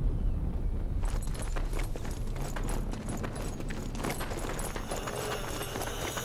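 Footsteps run quickly over stone paving.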